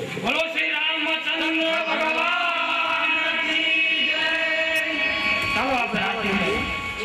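A man sings loudly through a microphone in a drawn-out melody.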